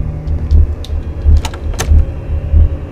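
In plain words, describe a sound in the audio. A locked door rattles as its handle is tried.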